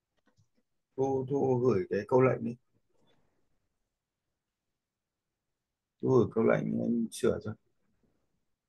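A man speaks over an online call, in short bursts with long pauses.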